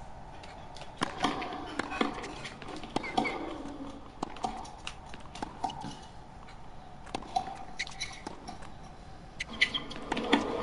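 A tennis ball is struck back and forth with sharp pops of rackets.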